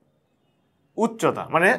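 A young man speaks clearly and calmly close to a microphone.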